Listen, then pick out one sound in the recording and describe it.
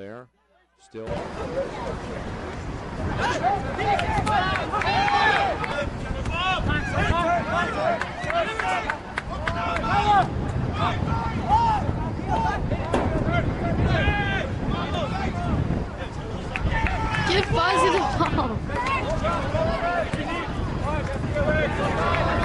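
A crowd of spectators shouts and cheers close by, outdoors.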